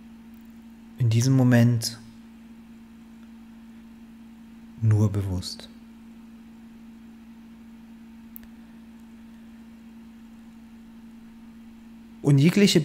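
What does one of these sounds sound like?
A man speaks calmly in short bursts into a close microphone, with long pauses.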